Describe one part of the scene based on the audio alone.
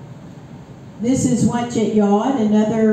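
An elderly woman speaks calmly into a microphone, heard through a loudspeaker in a large room.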